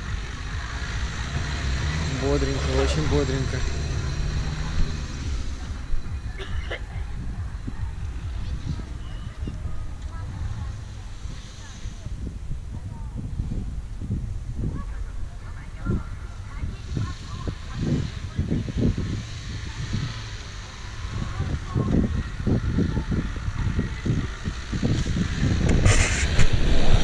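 Tyres crunch and churn through loose sand.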